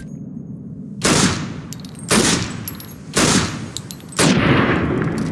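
A pistol fires several loud shots that echo outdoors.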